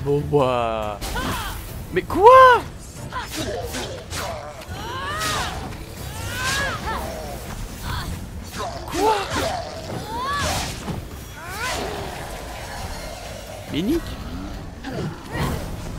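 Swooshing sounds sweep by.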